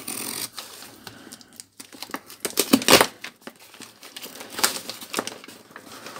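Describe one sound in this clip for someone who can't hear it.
A knife blade scrapes against cardboard.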